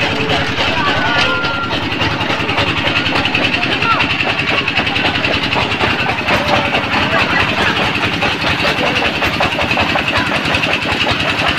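An engine chugs steadily nearby.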